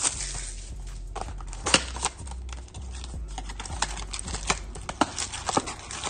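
A cardboard box is torn open and rustles in hands.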